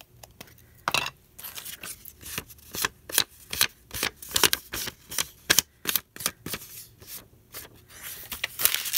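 An ink pad taps repeatedly against paper.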